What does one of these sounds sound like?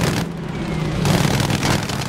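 Aircraft machine guns fire in rapid bursts.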